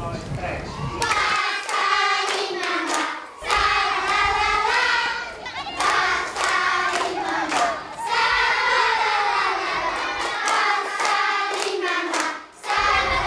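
A group of children sings together.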